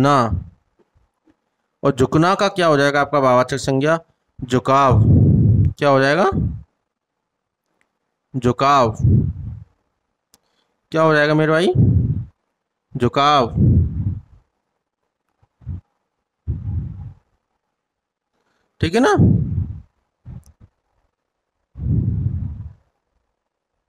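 A man speaks clearly into a close microphone, explaining in short phrases.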